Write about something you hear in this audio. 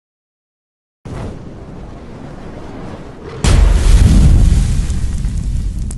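Flames roar and whoosh, swelling into a deep rumbling blast.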